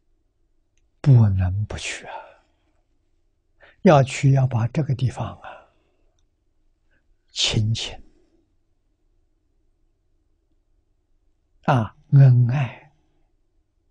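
An elderly man speaks calmly in short phrases with long pauses.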